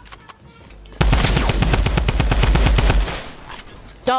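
Rapid gunfire rattles in a quick burst.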